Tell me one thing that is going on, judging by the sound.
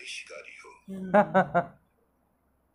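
A young man laughs briefly close to a microphone.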